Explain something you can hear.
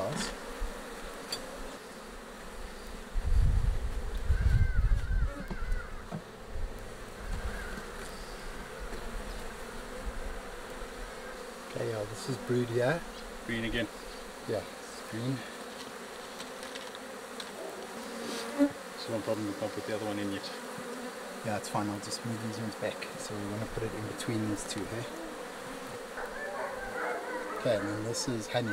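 A metal tool scrapes and knocks against wooden hive frames.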